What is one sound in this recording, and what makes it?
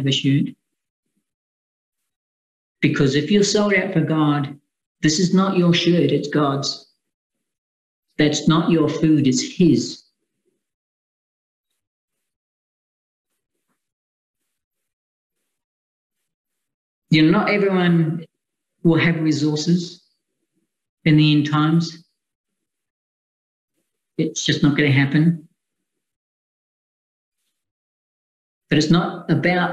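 A middle-aged man speaks calmly and closely into a microphone, in short phrases with long pauses.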